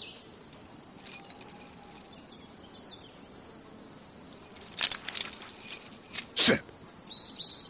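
Keys jingle and metal clicks against handcuffs.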